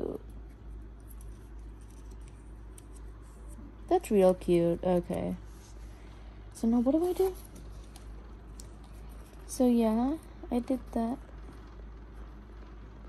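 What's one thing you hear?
Small paper cards rustle and crinkle softly as they are handled.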